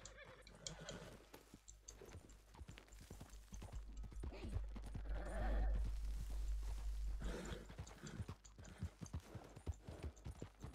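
Horse hooves clop along a dirt road.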